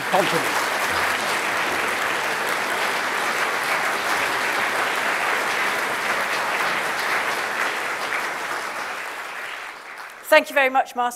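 An audience applauds in a large hall and the applause slowly fades.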